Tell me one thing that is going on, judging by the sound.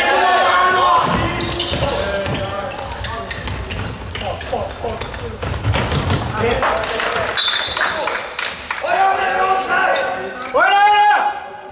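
Sneakers squeak sharply on a hard indoor court in a large echoing hall.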